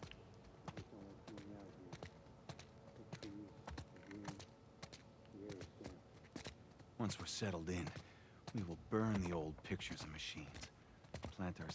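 Footsteps shuffle slowly and softly.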